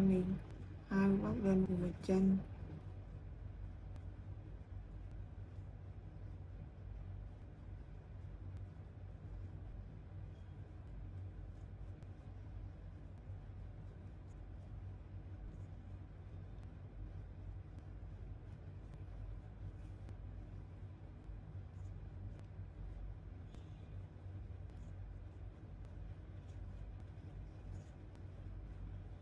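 A crochet hook and yarn rustle softly.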